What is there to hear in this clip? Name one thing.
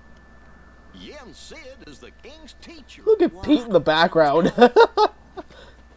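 A goofy cartoon man speaks loudly with excitement.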